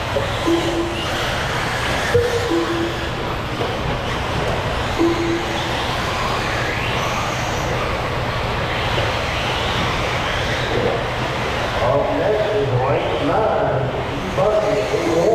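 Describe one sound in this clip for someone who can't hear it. Small electric racing cars whine as they speed around a dirt track.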